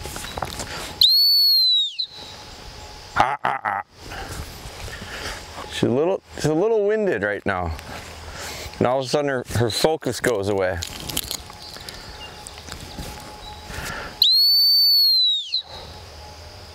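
A man blows a long, shrill whistle blast.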